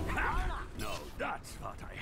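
A game gun fires in rapid bursts.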